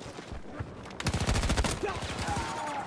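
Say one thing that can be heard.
Rapid gunfire bursts loudly in a video game.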